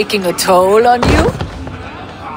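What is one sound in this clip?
A heavy thud sounds once.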